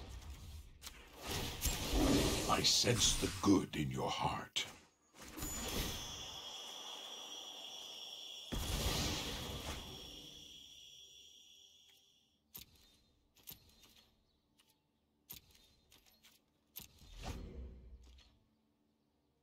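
Digital card game sound effects whoosh and chime.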